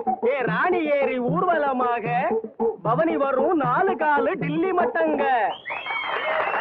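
A man sings loudly in a high, wavering voice.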